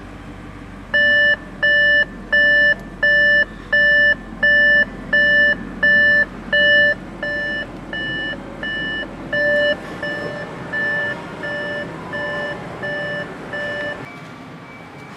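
A car's warning chime beeps over and over at a steady pace, growing softer.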